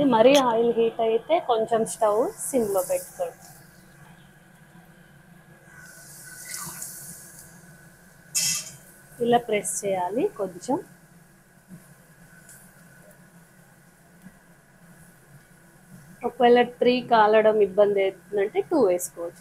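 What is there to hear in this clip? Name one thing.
Hot oil sizzles and crackles in a pan.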